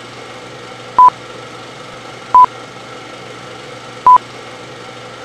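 A film countdown beeps three times, short and sharp.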